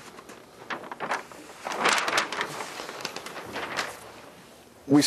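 A large sheet of paper rustles as it is flipped over.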